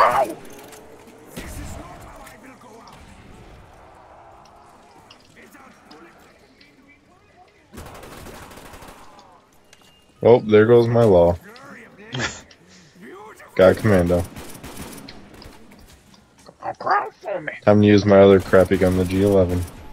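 Automatic gunfire rattles in short bursts.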